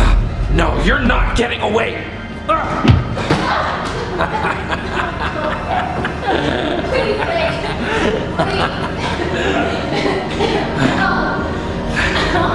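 A young man talks and exclaims excitedly close by.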